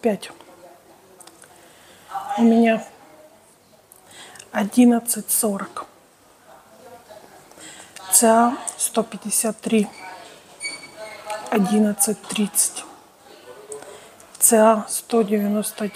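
A woman speaks calmly and close to a microphone, with pauses.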